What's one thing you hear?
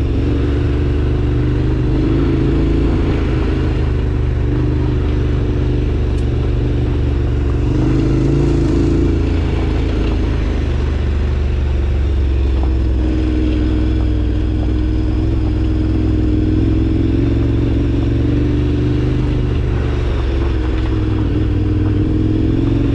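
A motorbike engine hums steadily, rising and falling slightly in pitch.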